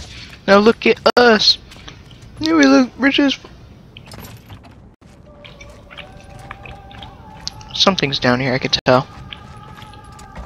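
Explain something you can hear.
Footsteps patter quickly across stone.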